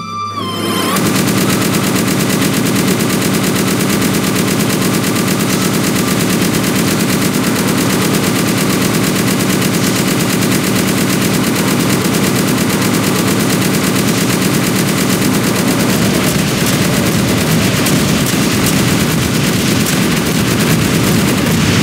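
A machine gun fires in long, rapid bursts.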